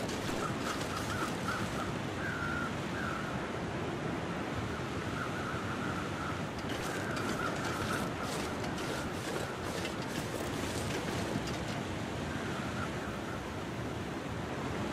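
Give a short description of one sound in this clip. Strong wind blows and howls steadily outdoors.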